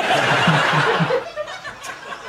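A studio audience applauds loudly through a television.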